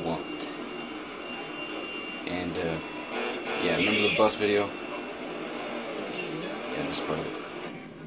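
A truck engine rumbles through a television speaker.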